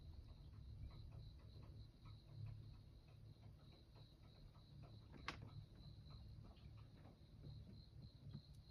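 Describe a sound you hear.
Cat litter crunches and rustles under a cat's paws close by.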